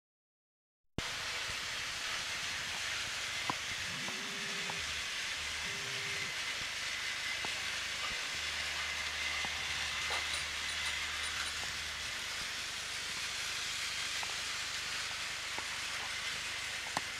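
Toy trains hum and rattle along plastic tracks.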